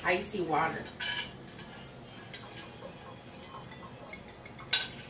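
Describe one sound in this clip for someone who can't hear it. Dishes clink and knock in a metal sink.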